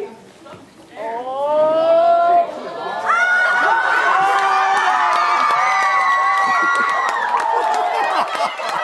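A crowd of children and adults sings together outdoors.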